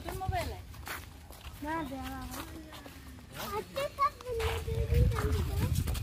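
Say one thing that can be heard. A small child babbles.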